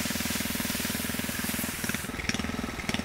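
A sprayer hisses as it sprays mist over plants.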